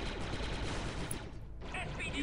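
A blaster rifle fires rapid bursts of energy shots.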